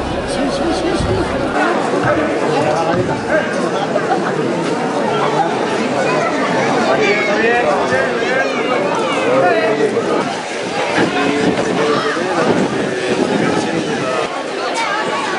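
A crowd of spectators chatters and shouts loudly outdoors.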